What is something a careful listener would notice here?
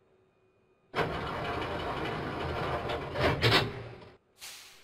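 Train doors slide shut.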